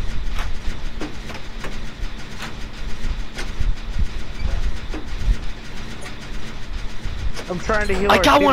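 A generator engine clatters and clicks as it is worked on.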